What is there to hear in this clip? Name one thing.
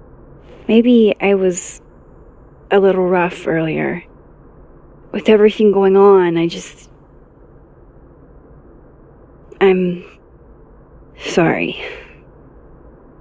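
A young woman speaks hesitantly and softly, close by.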